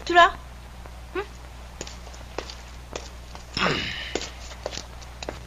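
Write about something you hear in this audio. Footsteps scuff on wet ground.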